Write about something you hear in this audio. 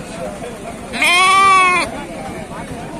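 A sheep bleats loudly close by.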